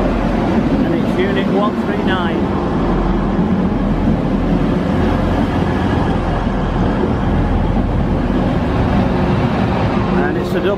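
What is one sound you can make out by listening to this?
Train wheels clatter and squeal on the rails.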